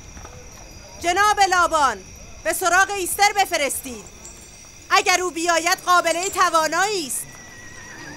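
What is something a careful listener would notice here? An elderly woman wails loudly in a high, sobbing voice.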